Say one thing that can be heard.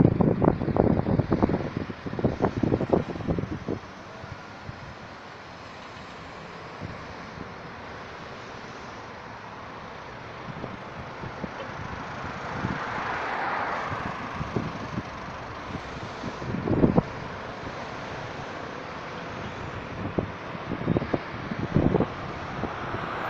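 Cars drive past one after another on a road nearby.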